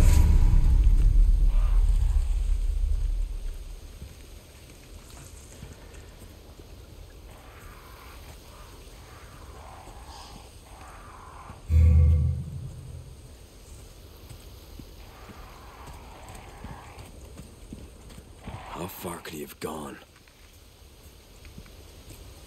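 Footsteps crunch over wet leaves and gravel at a steady walking pace.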